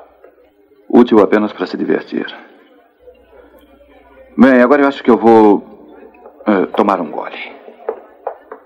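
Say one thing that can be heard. A man speaks in a low, earnest voice nearby.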